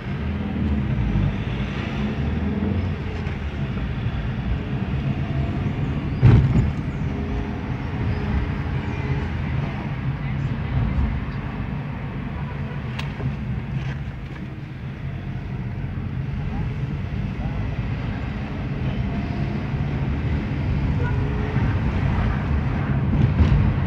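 Tyres roll over the road surface.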